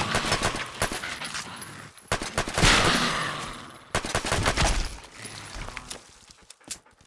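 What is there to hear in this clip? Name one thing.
Pistol shots bang out in quick bursts.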